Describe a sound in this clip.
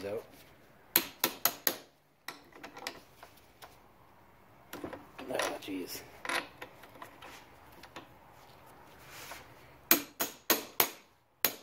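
A socket ratchet clicks as it turns a spark plug.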